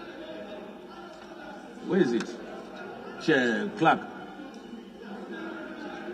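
Many men murmur and chatter in a large echoing hall.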